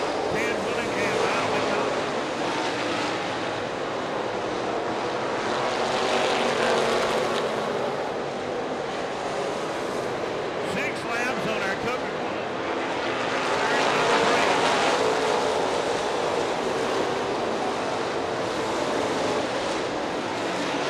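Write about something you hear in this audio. Race car engines roar loudly as they speed around a track.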